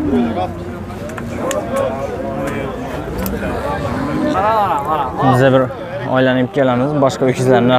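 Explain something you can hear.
Several men talk loudly nearby outdoors.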